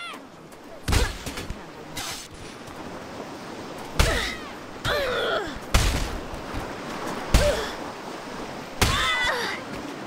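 Heavy blows of a mace thud against a body.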